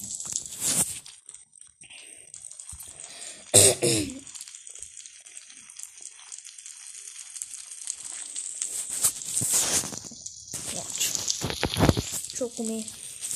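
A boy speaks casually and close to a microphone.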